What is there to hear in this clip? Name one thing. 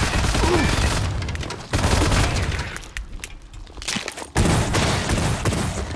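A shotgun fires loud, booming blasts.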